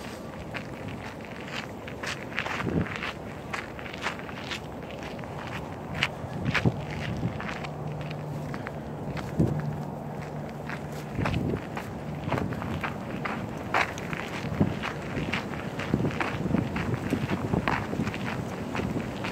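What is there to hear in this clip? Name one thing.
Footsteps crunch steadily on a paved path.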